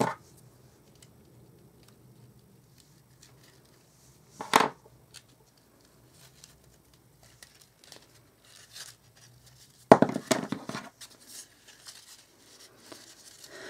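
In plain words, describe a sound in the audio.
Pleated paper crinkles and rustles as it is handled.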